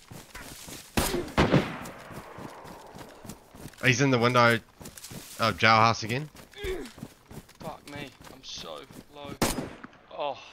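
A gunshot cracks loudly nearby.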